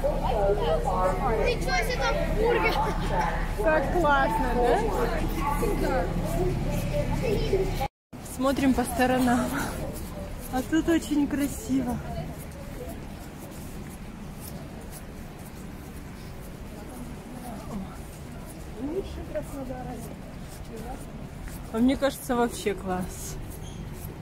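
Children chatter and call out nearby outdoors.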